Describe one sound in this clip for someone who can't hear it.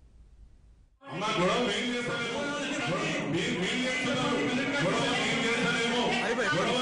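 A crowd of men and women shout and chant together.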